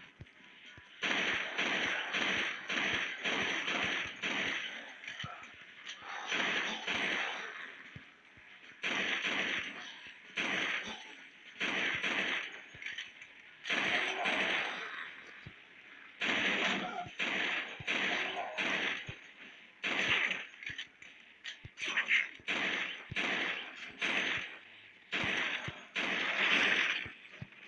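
A pistol fires shot after shot in quick bursts.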